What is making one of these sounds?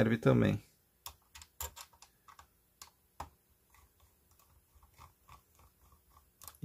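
A small screwdriver clicks and scrapes against a plastic casing.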